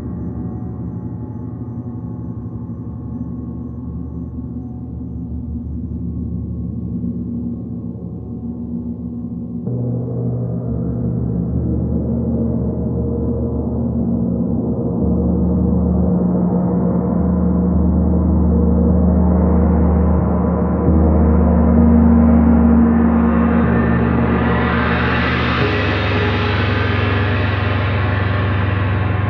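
A large gong hums with a deep, swelling drone.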